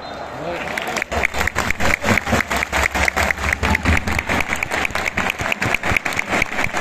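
A stadium crowd claps in a steady rhythm.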